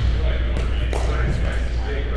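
Paddles strike a ball with sharp hollow pops in an echoing hall.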